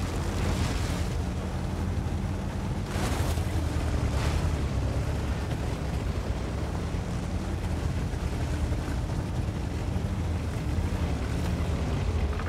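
Tank tracks clatter and squeak.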